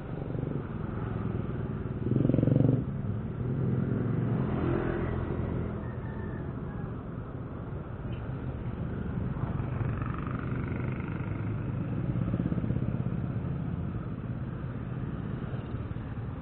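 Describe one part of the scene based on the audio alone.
A scooter engine idles with a low, steady rumble.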